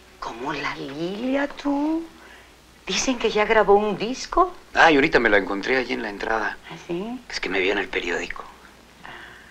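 A woman speaks with emotion close by.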